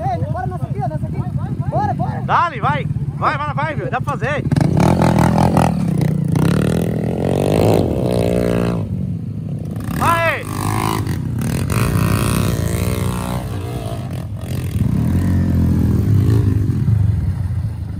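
A dirt bike engine idles close by.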